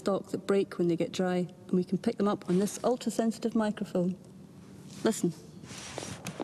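A young woman talks calmly up close.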